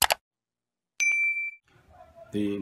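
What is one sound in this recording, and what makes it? A bell chimes once.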